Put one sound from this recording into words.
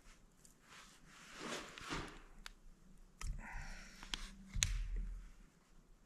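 Metal parts clink and scrape together.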